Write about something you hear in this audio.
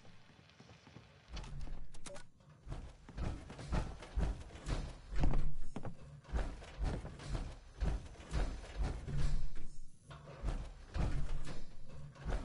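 Heavy metal footsteps thud on a hard floor.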